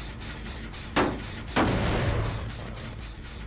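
A metal machine clanks and rattles as it is struck.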